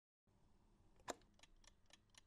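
A hand presses down a chess clock button with a sharp click.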